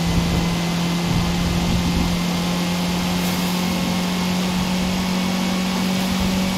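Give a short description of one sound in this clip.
A car engine drones steadily at high speed.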